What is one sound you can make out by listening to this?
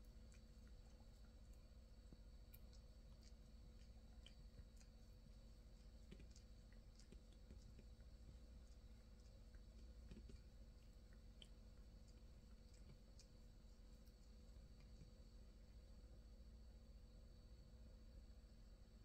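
A cat licks its fur with soft, wet lapping sounds close by.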